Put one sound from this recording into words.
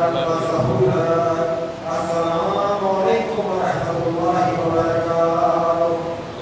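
A young man sings a slow lament into a microphone, heard through a loudspeaker.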